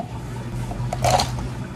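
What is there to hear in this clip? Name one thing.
Thick syrup pours into a plastic cup.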